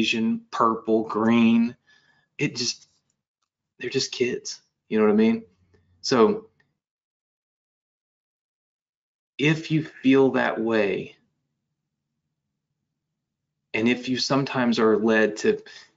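A man talks calmly and closely into a microphone, with pauses.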